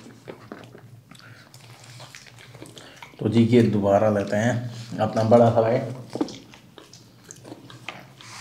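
Crispy fried chicken crunches as a man bites into it.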